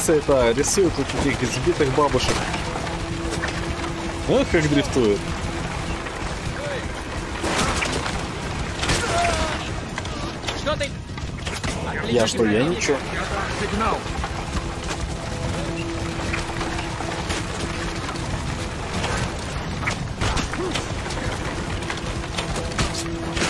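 Chariot wheels rumble and rattle.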